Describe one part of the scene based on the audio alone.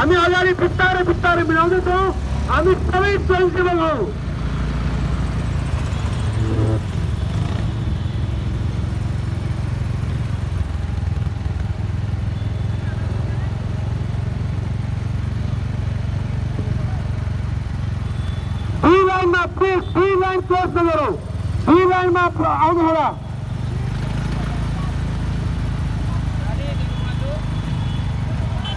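A small motorcycle engine hums while riding along a road.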